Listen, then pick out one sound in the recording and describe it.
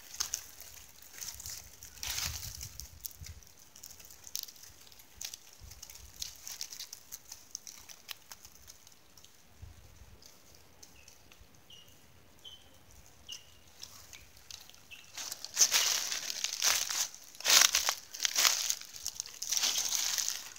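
A snake slithers through dry leaves with a soft rustle.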